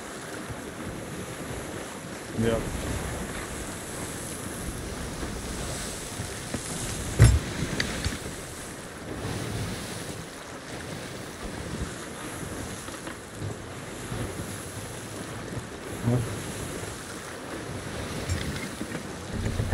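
Rough sea waves splash and roll against a wooden ship.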